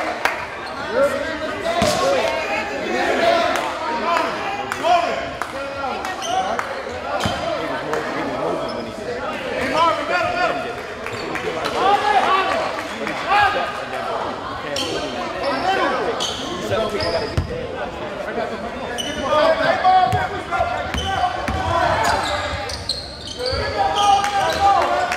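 A crowd murmurs and cheers in an echoing gym.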